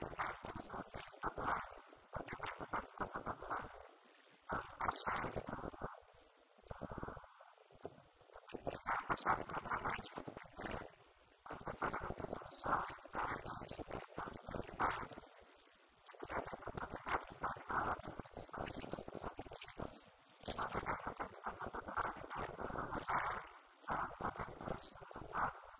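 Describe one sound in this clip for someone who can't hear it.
A woman speaks calmly into a microphone, heard through a loudspeaker in a large room.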